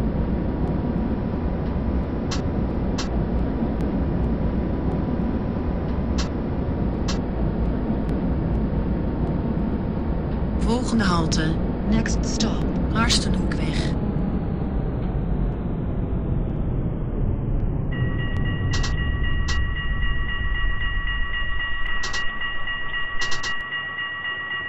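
A tram rumbles steadily along rails, then slows and comes to a stop.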